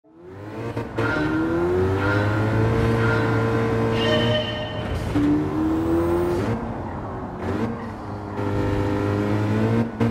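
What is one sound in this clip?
A car engine revs high, drops briefly at each gear change, and revs up again.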